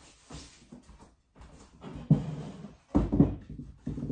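A wooden crib knocks and creaks as a woman handles it.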